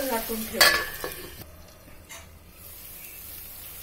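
A metal lid clinks against a pot as it is lifted off.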